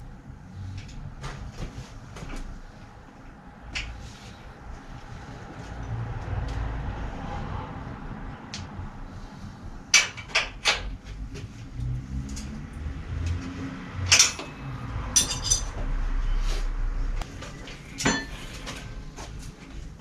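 Tools clink and knock on a bicycle.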